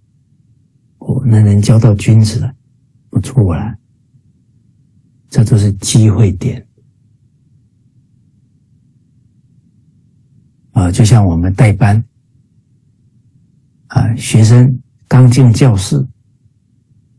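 A middle-aged man speaks calmly in short phrases through a microphone over an online call.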